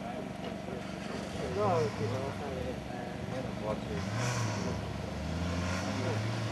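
A small group of men and women chat outdoors at a distance.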